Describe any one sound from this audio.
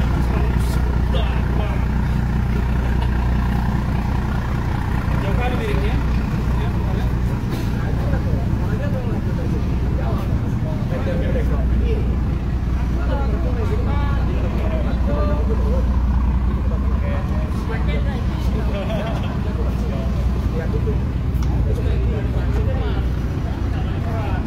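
Water washes against a boat's hull.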